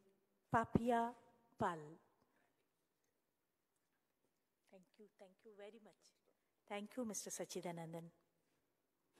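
A woman speaks with animation into a microphone in a reverberant hall.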